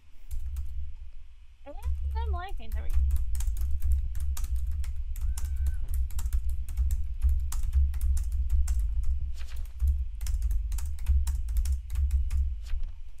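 Keys clatter quickly on a keyboard close by.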